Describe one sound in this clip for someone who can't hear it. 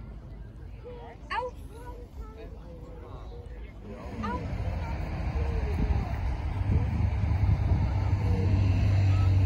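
People talk in the distance outdoors.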